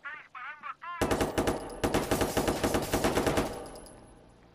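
A pistol fires a rapid burst of loud shots.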